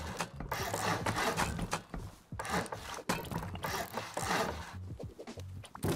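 A building hammer thuds repeatedly against walls.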